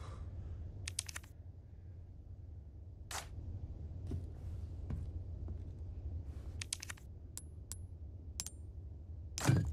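Short electronic menu clicks and chimes sound now and then.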